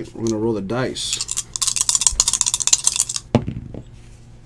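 Dice rattle in a shaken hand.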